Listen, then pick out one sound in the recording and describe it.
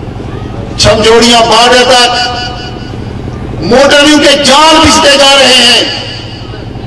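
A man speaks forcefully into a microphone, heard through loudspeakers with an echo outdoors.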